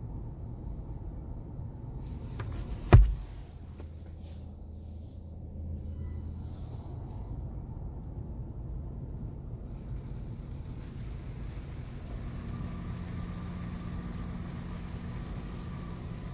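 A low machine motor hums steadily, heard from inside a car.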